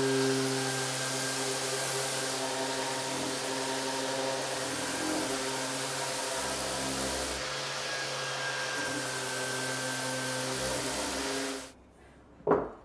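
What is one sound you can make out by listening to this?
An orbital sander whirs loudly against wood.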